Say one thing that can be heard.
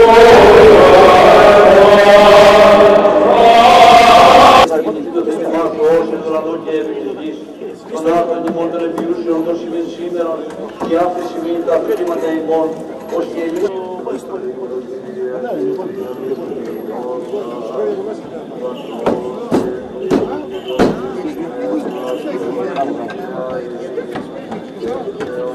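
A crowd of men and women sings a hymn together, loudly at first and then more softly.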